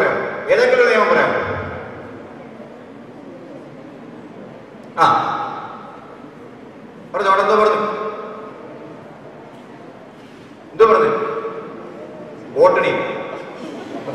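A man speaks forcefully through a microphone in short bursts, echoing around a large hall.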